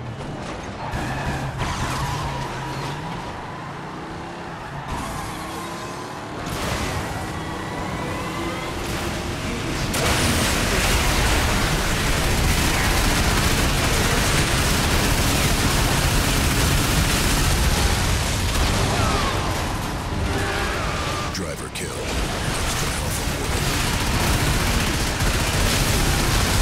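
A car engine roars as a vehicle speeds along.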